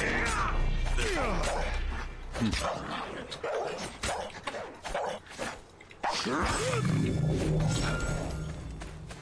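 A wild animal snarls and yelps during a fight.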